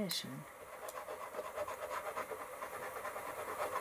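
A small piece of paper rustles softly between fingers.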